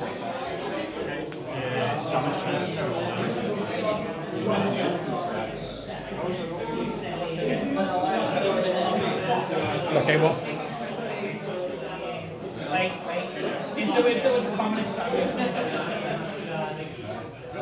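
Playing cards slide and tap on a table.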